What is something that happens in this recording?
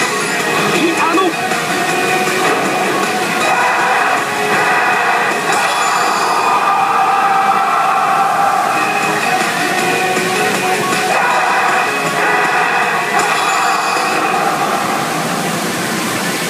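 Electronic game music plays loudly from a machine's speakers.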